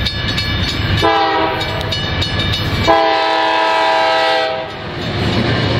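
A locomotive horn blows loudly in two long blasts.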